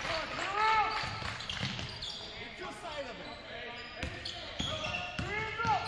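A basketball bounces on a hardwood floor, echoing in a large hall.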